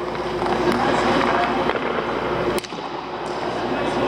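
A puck slides across the ice and stops.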